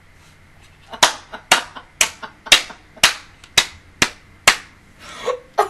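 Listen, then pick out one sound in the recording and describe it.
A young woman claps her hands sharply, close to a microphone.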